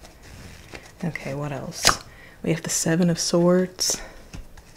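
A young woman speaks softly and calmly close to a microphone.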